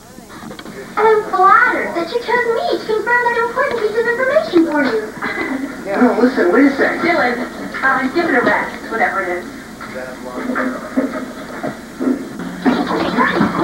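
Women talk with animation.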